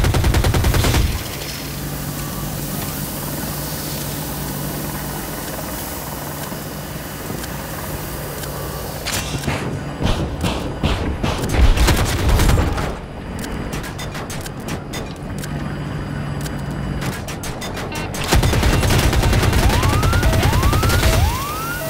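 A helicopter's rotor throbs steadily overhead.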